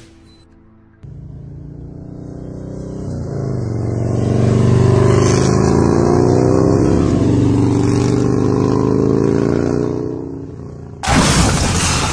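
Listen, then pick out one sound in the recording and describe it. A motorcycle engine roars and revs up.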